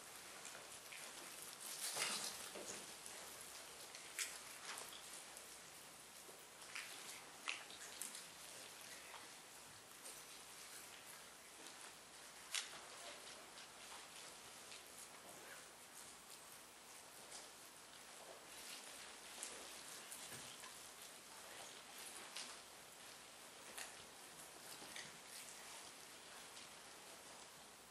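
An elderly man preaches into a microphone, heard through a loudspeaker in an echoing hall.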